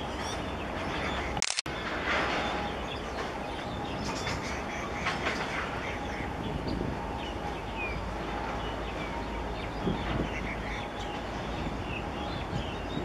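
A large ship's engine rumbles low and steady in the distance.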